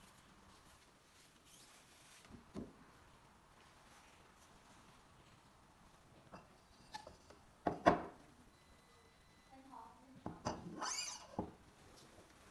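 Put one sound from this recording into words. Plastic tubes clack and knock as they are set into a rack.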